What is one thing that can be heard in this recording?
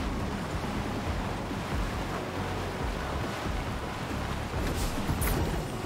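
A truck engine rumbles steadily as the truck drives.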